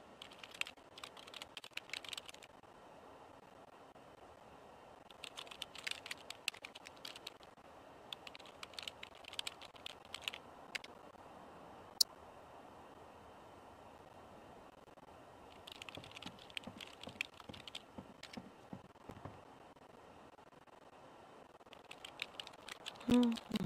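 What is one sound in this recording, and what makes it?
Keys clatter on a computer keyboard in quick bursts.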